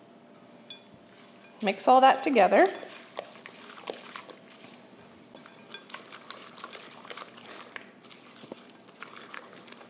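A spoon scrapes and stirs a thick batter in a glass bowl.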